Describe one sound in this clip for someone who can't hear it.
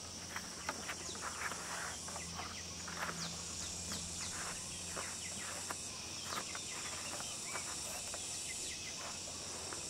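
Wire rattles and scrapes as it is twisted tight around wood.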